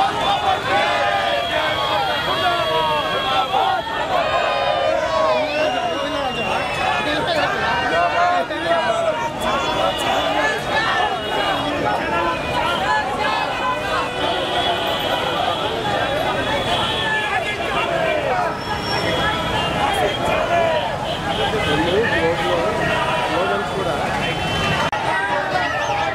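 A large crowd of men and women chants slogans loudly outdoors.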